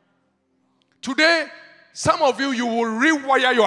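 A man preaches loudly and with animation into a microphone, heard through loudspeakers in a large echoing hall.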